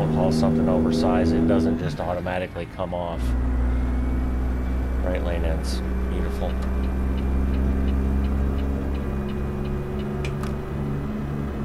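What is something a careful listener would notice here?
A heavy truck engine drones steadily, dropping briefly during a gear change.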